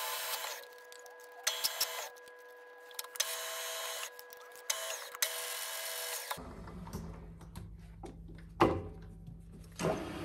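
Metal parts clank as a hand works at a machine.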